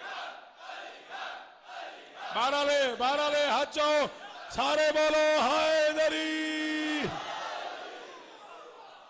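A crowd of men chants loudly in unison in an echoing hall.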